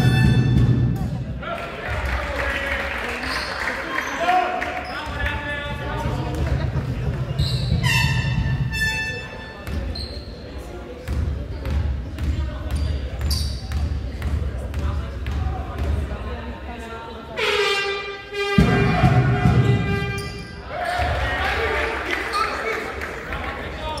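Players call out to each other across an echoing hall.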